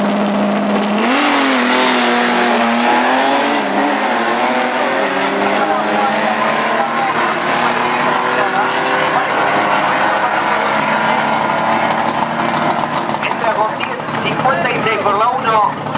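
A car engine roars and revs hard as the car speeds away.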